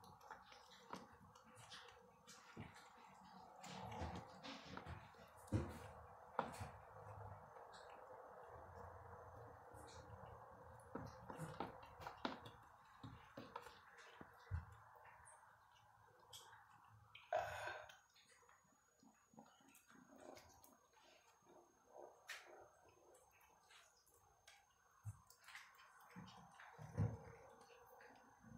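A kitten's paws and a rat's body scrape and knock on a hard floor.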